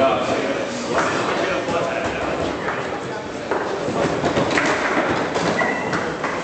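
Foosball rods rattle and clack as they are spun.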